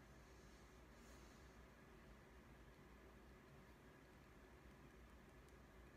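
A makeup brush softly brushes across skin.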